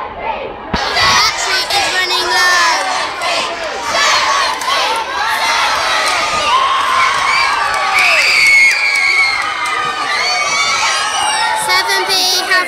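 A child shouts excitedly, close by.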